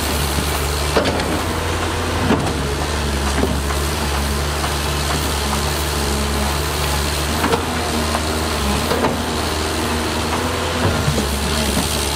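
A bulldozer's metal tracks clank and squeak over rocks.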